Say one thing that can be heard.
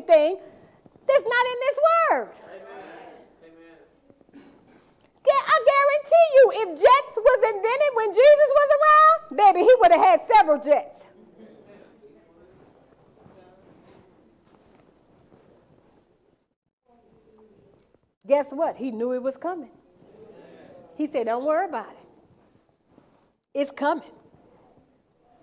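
A woman speaks with animation through a microphone in a large room with some echo.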